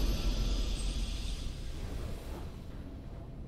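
A triumphant game fanfare rings out and fades.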